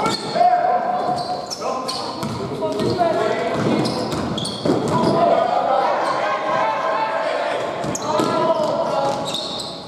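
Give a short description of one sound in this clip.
Young players shout to each other across the hall.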